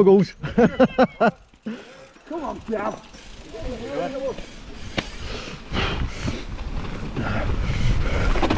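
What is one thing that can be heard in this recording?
Bicycle tyres crunch over a gravel track.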